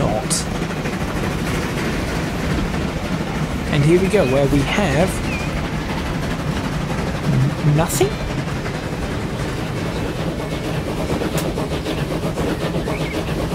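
A steam locomotive chugs steadily along the track.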